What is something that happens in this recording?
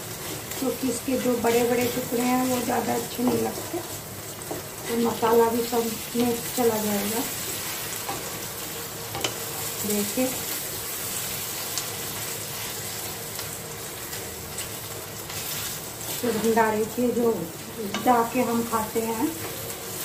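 A wooden spatula scrapes and stirs food in a metal pan.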